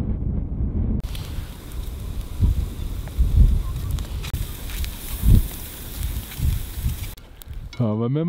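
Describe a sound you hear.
Fish sizzle on a grill.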